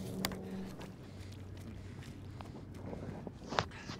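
Footsteps fall steadily on a pavement.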